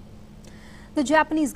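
A woman speaks calmly and clearly into a microphone.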